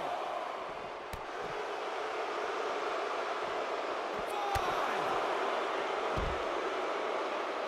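A large arena crowd roars and cheers steadily.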